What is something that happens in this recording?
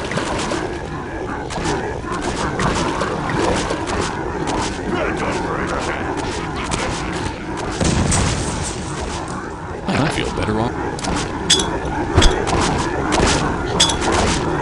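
Fire crackles and roars.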